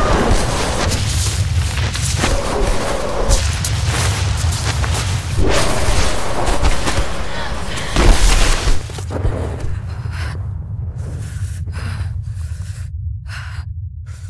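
A strong wind roars and howls through a snowstorm.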